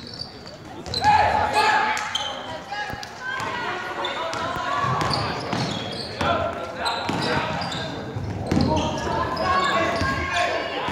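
A crowd cheers and shouts loudly nearby.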